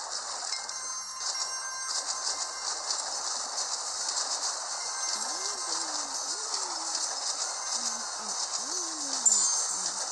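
Game coins chime rapidly as they are collected.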